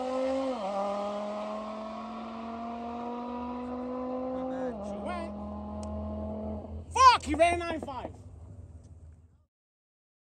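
A racing car engine drones steadily down a track, then roars past.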